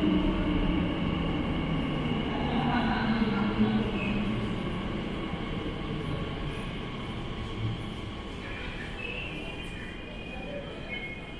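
A train rumbles into an underground station and slows to a stop.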